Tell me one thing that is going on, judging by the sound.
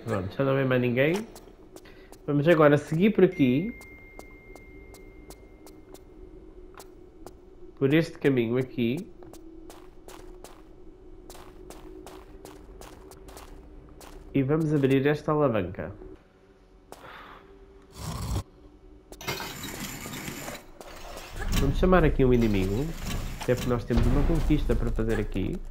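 Quick footsteps patter on a hard stone floor.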